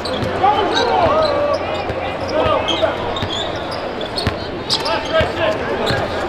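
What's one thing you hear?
A basketball bounces with dull thuds on a hardwood court.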